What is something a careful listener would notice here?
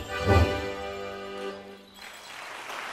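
Accordions play a final sustained chord in a large hall.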